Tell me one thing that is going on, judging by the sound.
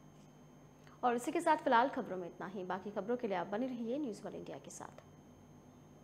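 A woman reads out calmly into a microphone.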